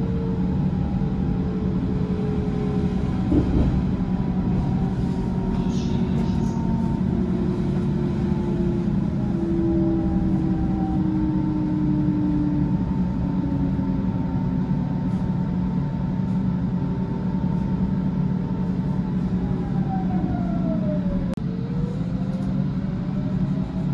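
A train's motor whines, its pitch gliding down as the train slows.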